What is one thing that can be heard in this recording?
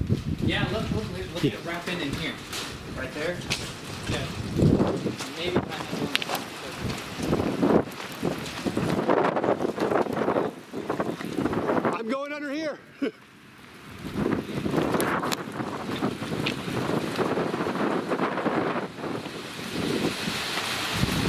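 Strong wind roars and buffets outdoors in gusts.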